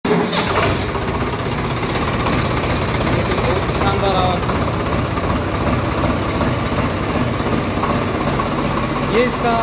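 A tractor's diesel engine idles with a steady, low throb.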